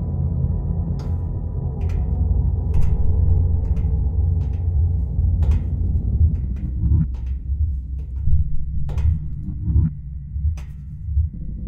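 Footsteps tap slowly on hard ground.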